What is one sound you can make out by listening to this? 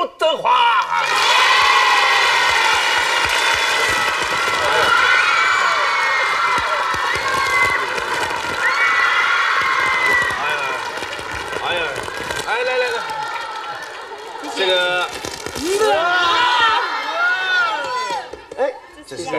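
A crowd of young women screams and cheers.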